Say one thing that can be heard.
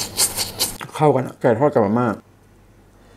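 A young man hums or speaks briefly, close to a microphone.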